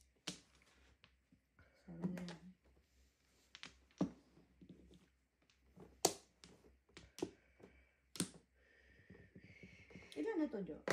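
Mahjong tiles click and clack against each other on a table.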